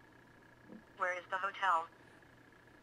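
A phone's small speaker plays a synthetic voice speaking a short phrase.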